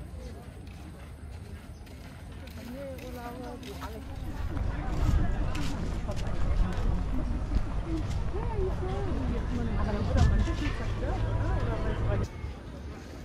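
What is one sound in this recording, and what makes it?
Tourists chat in the distance outdoors.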